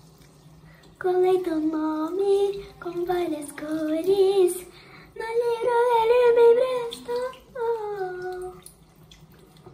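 A young girl sings softly close by.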